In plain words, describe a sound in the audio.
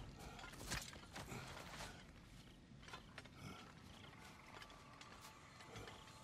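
Footsteps thud softly on earthy ground.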